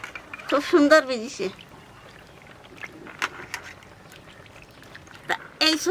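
Soaked lentils patter and splash as a hand drops them into water in a metal bowl.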